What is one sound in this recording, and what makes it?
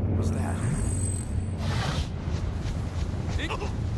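Electricity crackles and sparks.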